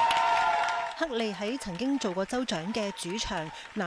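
A woman speaks cheerfully into a microphone.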